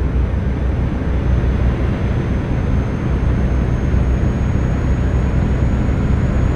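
Tyres rumble on a highway.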